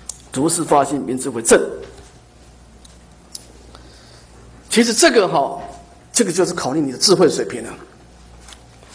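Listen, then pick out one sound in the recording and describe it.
A middle-aged man speaks calmly and slowly into a microphone, with pauses.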